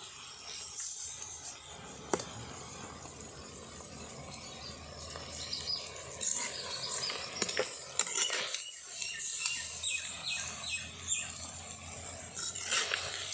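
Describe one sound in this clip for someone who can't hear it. Food bubbles and sizzles in a pot.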